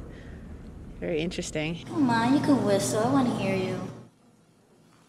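A young woman speaks cheerfully close to a microphone.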